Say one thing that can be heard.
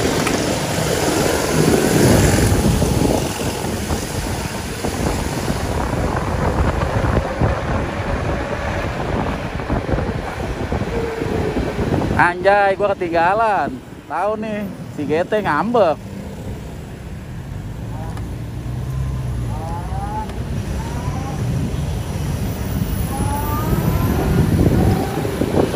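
A motor scooter engine hums steadily.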